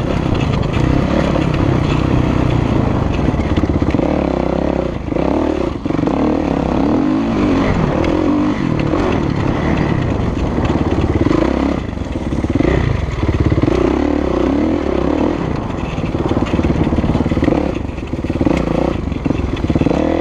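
A four-stroke motocross bike revs hard, rising and falling in pitch through gear changes.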